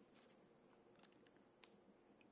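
A plastic bag crinkles as a hand handles it.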